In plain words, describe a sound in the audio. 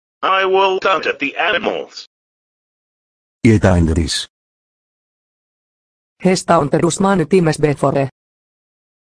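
A man speaks angrily in a flat, computerised voice.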